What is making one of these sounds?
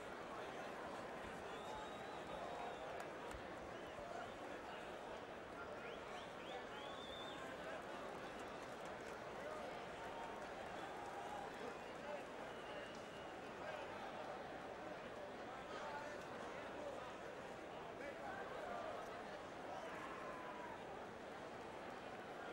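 A large crowd murmurs and cheers steadily in a big echoing arena.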